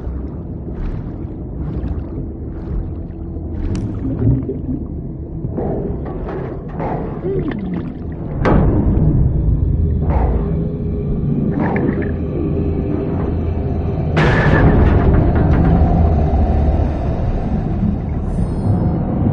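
Water churns and rumbles underwater.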